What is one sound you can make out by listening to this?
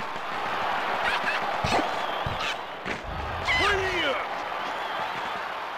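A crowd cheers and roars steadily.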